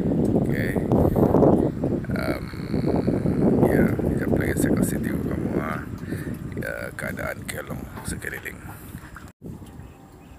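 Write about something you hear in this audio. A man talks calmly and close to a phone microphone.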